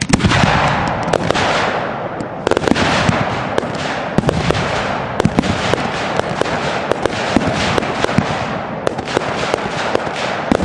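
Fireworks hiss and fizz as they shoot upward.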